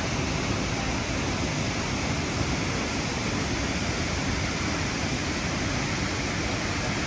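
A waterfall pours and splashes into a rock pool.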